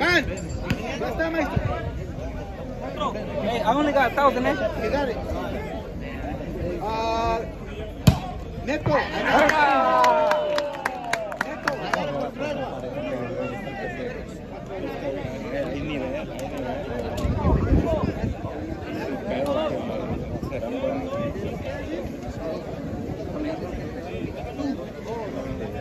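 A crowd of spectators talks and calls out outdoors.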